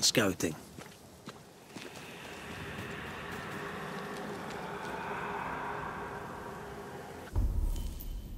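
Footsteps tread on grass and dirt.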